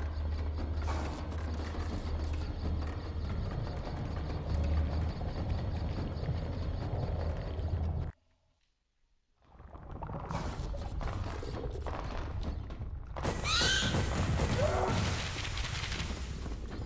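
Footsteps patter quickly over rocky ground.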